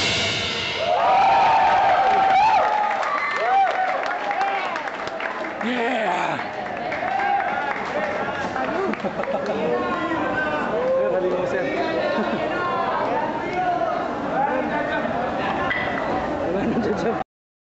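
A crowd of young people shouts and sings loudly nearby.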